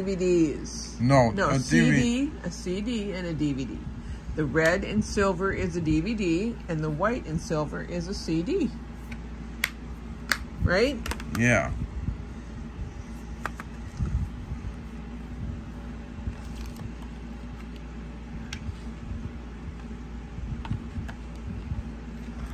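Plastic cases click and rattle as hands handle them.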